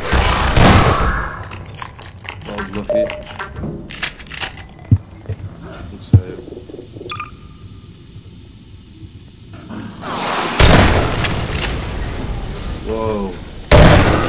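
Shotgun blasts boom loudly.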